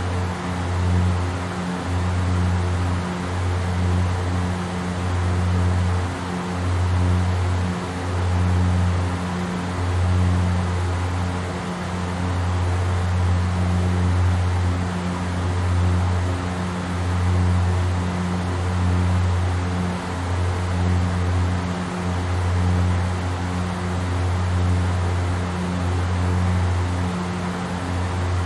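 Aircraft engines drone steadily with a low, pulsing hum.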